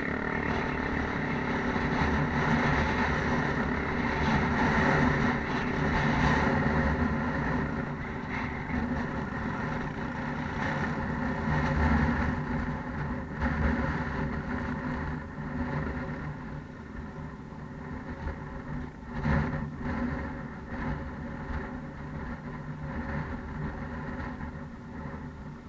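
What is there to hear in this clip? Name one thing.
A quad bike engine drones and revs close by, then fades as it pulls away.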